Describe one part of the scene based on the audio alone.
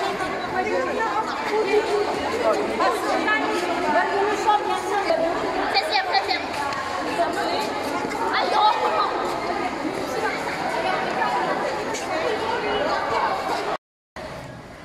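Children chatter and shout excitedly in a group nearby.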